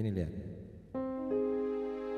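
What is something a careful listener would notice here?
An electronic keyboard plays a held chord.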